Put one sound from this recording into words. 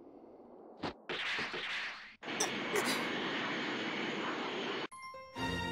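Wind rushes loudly past during fast flight.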